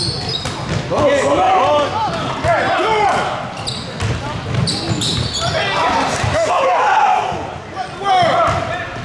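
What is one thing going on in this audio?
A man shouts from the sideline in a large echoing hall.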